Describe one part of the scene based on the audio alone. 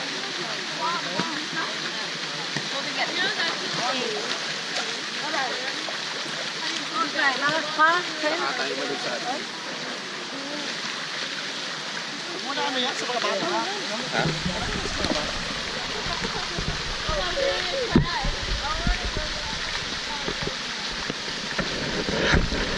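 Children shout and call out with excitement outdoors.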